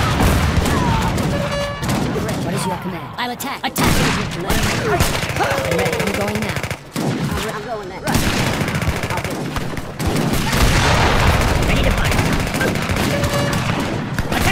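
Weapons clash and musket shots crack in a battle.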